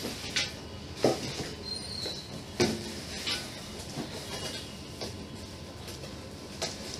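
A cardboard box rustles and thumps as a man handles it.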